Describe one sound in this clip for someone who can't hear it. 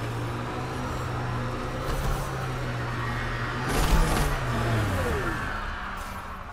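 A vehicle engine hums steadily, then winds down.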